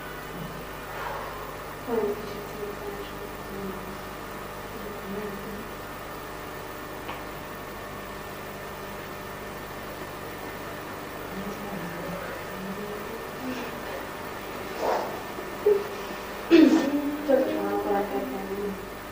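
A young woman speaks with feeling, a little way off.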